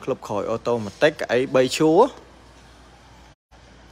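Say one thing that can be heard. A car's power tailgate hums as it lifts open.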